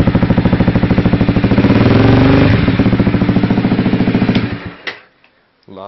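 A motorcycle engine idles loudly up close with a rapid, chugging beat.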